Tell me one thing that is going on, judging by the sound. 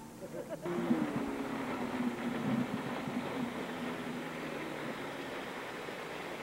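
A motorboat engine drones steadily as the boat speeds closer across the water.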